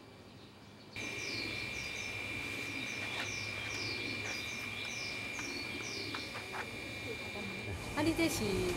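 Small birds chirp and whistle repeatedly.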